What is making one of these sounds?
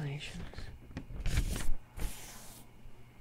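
A page of a book turns with a papery rustle.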